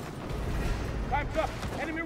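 Heavy boots thud as a soldier runs.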